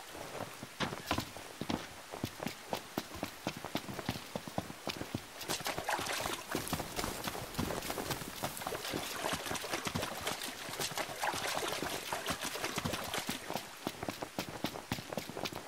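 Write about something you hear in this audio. Footsteps run quickly through wet undergrowth.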